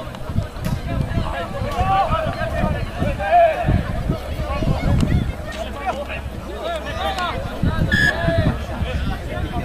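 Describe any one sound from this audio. Rugby players shout to each other across an open field.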